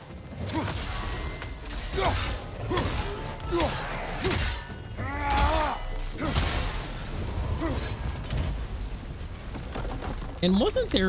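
Heavy blows and crashes ring out in a fierce fight.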